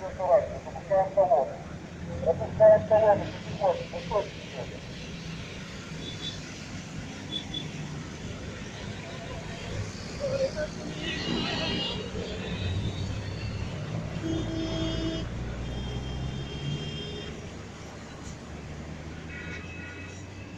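A column of cars and off-road vehicles drives past close by, engines rumbling and tyres humming.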